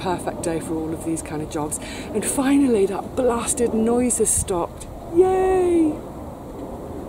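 A woman speaks cheerfully close by.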